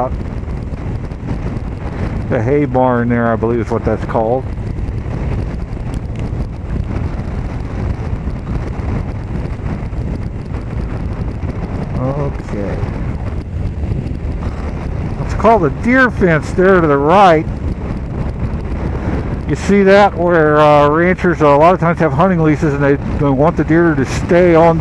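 A car engine hums steadily as tyres roll along a road.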